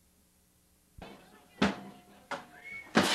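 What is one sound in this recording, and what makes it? A keyboard plays notes.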